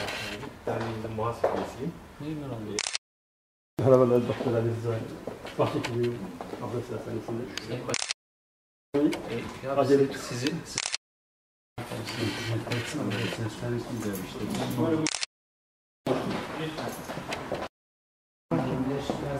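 Middle-aged men talk with each other warmly, close by, in short bursts broken by sudden silences.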